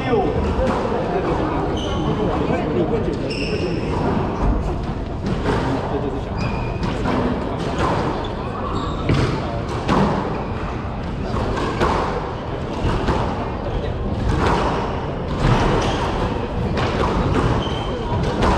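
Footsteps thud quickly on a wooden floor.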